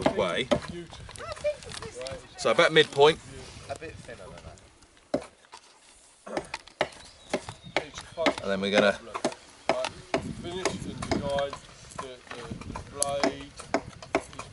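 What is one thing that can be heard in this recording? A knife knocks and taps into wood.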